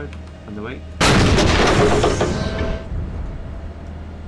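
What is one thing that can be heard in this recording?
A cannon fires with a sudden loud boom that rumbles away.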